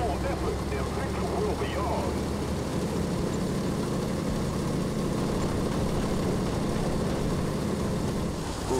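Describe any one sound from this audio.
Tank treads clatter over rough ground.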